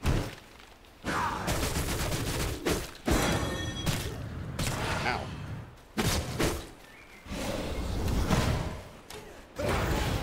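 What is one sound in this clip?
Weapons clash and whoosh in a fight.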